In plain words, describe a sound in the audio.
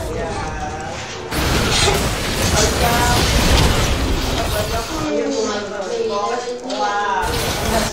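Game sound effects of fighting clash and whoosh.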